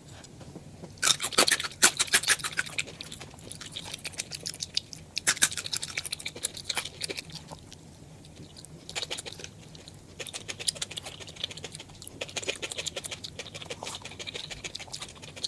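A woman chews crunchy food loudly and close up.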